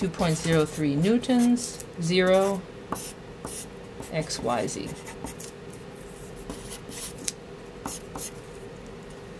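A felt marker squeaks and scratches across paper.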